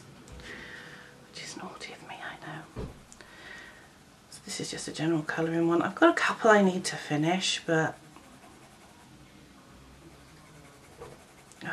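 A coloured pencil scratches softly across paper.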